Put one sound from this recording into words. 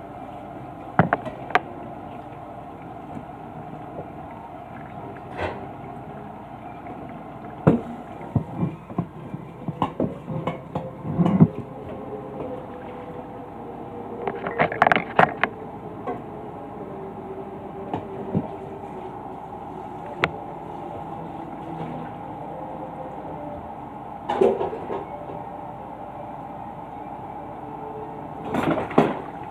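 Dishes and utensils clink and clatter nearby.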